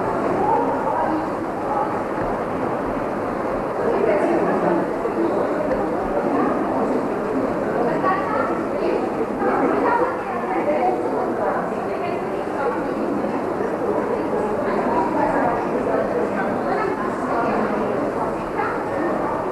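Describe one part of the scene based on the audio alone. Several women chatter together nearby.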